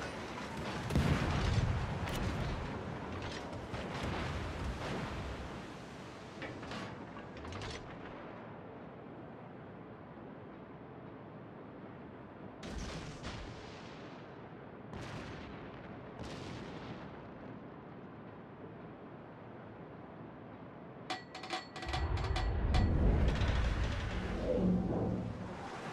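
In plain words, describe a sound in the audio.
Shells crash into the water nearby with heavy splashes.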